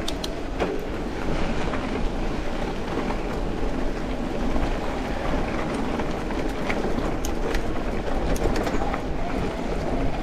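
Bicycle tyres crunch and rattle over a rough dirt track.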